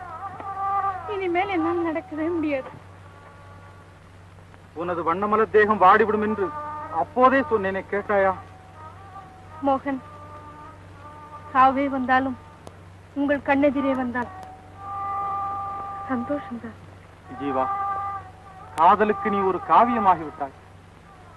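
A man sings a gentle melody.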